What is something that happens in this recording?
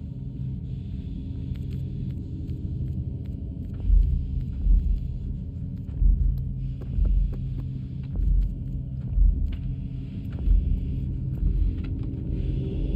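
Small footsteps patter and thud on creaking wood.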